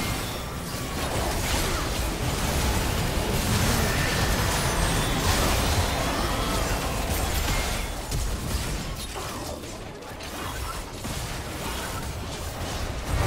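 Game weapons clash and strike repeatedly.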